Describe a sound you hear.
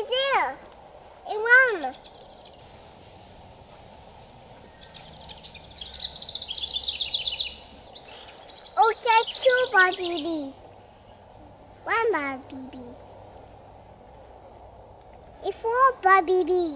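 A toddler girl squeals excitedly close by.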